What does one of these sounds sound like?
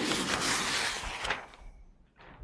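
A large sheet of paper rustles as it is handled.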